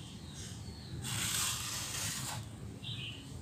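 A plastic bowl scrapes across a concrete floor.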